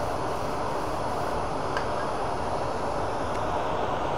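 A hand tool scrapes against the spinning workpiece.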